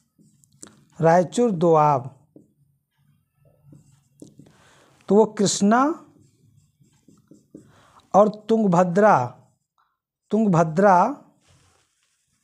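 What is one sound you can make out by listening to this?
A man speaks in short, calm phrases close by.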